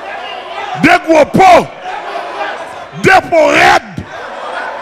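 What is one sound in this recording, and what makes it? A man shouts loudly and fervently through a microphone in an echoing hall.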